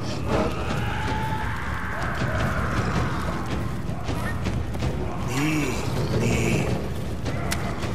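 A large beast growls and snarls.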